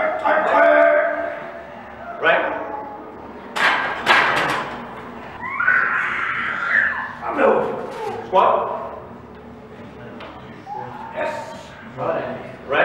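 Several young men shout encouragement loudly in an echoing room.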